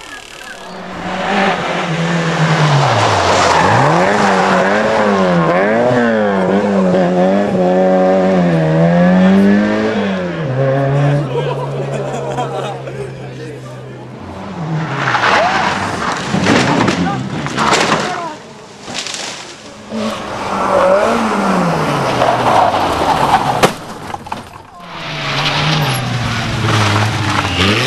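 A rally car engine roars and revs hard as it races past.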